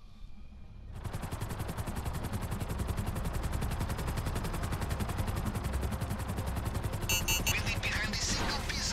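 A helicopter's rotor thumps rapidly and steadily close by.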